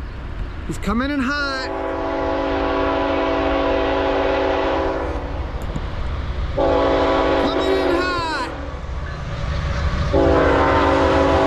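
A train horn blows loud, long blasts as the train approaches.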